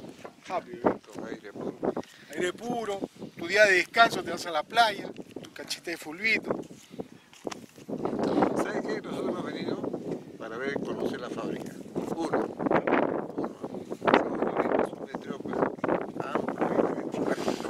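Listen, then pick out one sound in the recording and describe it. A middle-aged man talks close by, calmly and at length.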